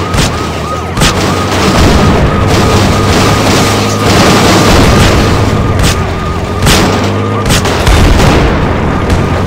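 Explosions blast and crackle.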